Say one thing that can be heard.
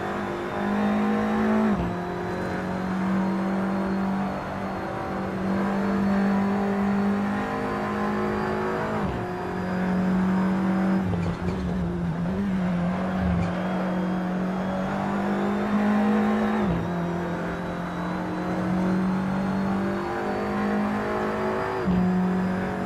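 A racing car engine roars loudly, rising in pitch and dropping sharply with each gear shift.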